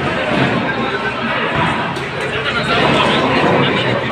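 Bowling balls knock together on a ball return.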